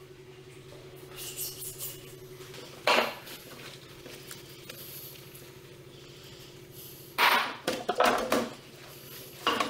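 Soapy water sloshes as a gloved hand scrubs.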